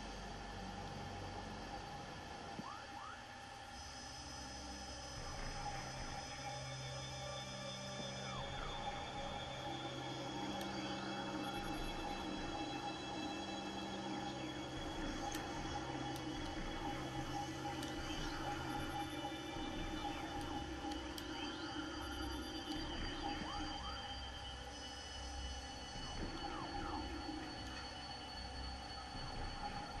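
Electronic game music with a low hum plays steadily.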